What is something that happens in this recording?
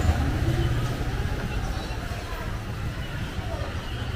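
A car engine idles nearby.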